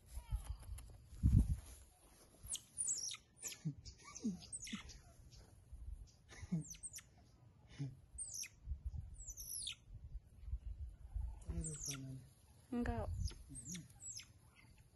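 Small animals give short, high chirping calls close by.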